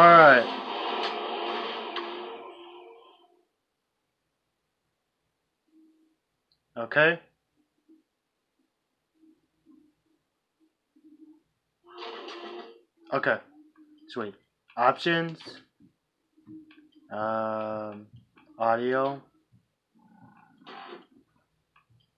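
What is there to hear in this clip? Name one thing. Sound effects from a video game play through television speakers.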